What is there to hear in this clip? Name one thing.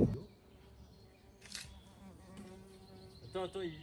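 A rake scrapes over loose soil.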